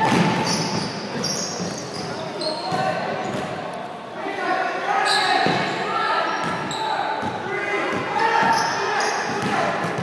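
A basketball bounces on the floor, echoing in a large hall.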